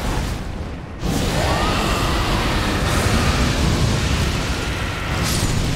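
A fiery blast bursts with a loud roaring whoosh.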